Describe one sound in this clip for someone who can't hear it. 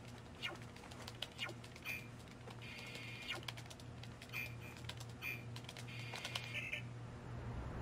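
Keys clatter as fingers type quickly on a keyboard.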